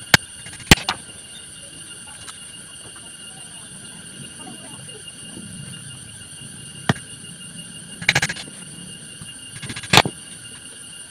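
Wooden pieces clack and knock against one another.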